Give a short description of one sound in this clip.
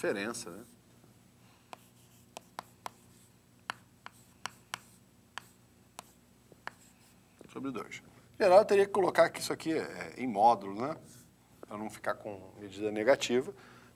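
A man explains calmly and clearly.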